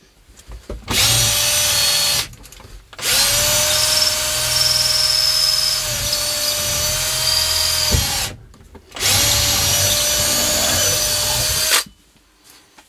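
A power drill whirs in loud, steady bursts.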